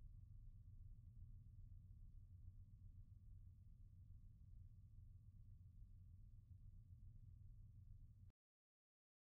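A train engine rumbles low and steadily as a train rolls away along the track.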